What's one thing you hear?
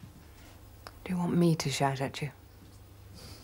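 A middle-aged woman asks a question calmly close by.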